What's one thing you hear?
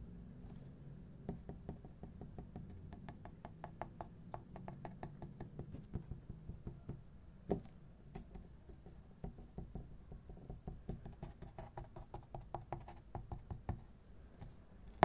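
Fingernails tap rapidly on paper, close up.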